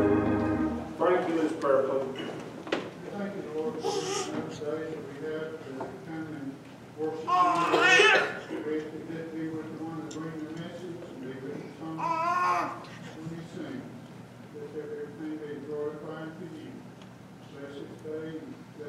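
A man speaks calmly and steadily through a microphone in a room with some echo.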